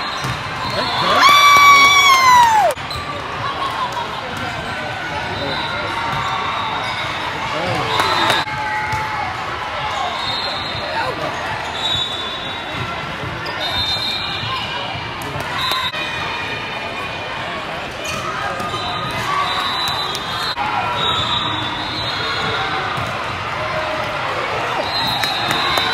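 Young women players call out to each other in a large echoing hall.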